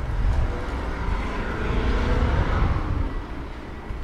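Traffic hums on a nearby road.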